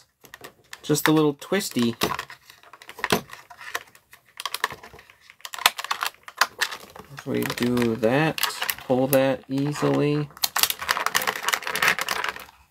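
Plastic packaging crinkles and crackles as hands handle it.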